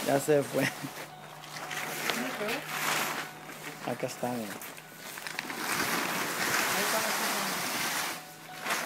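A plastic tarp rustles and crinkles close by.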